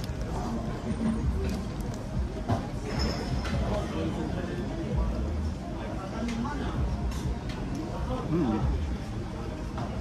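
A man chews and hums with pleasure close by.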